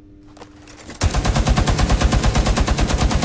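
A mounted machine gun fires in a rapid, steady burst.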